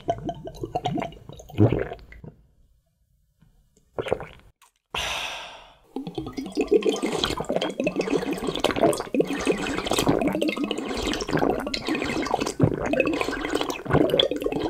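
A young man slurps and gulps liquid loudly, close by.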